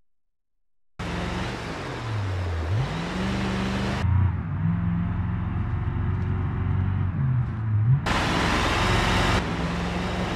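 A bus engine revs and roars, rising and falling in pitch.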